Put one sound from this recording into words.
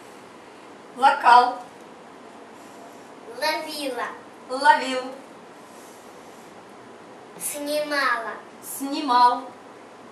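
A young girl answers in a high voice nearby.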